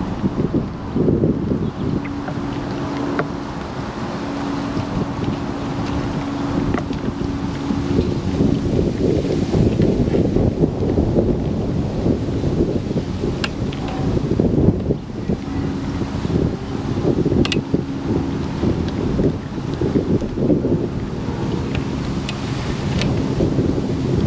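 Gusty wind blows and buffets outdoors.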